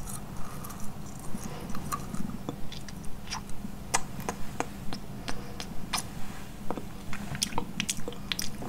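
A young woman makes soft mouth sounds close to a microphone.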